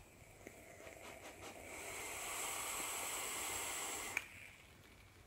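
A man inhales deeply through a vape, with a soft hiss.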